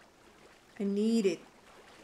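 Water splashes as someone wades out of a pool.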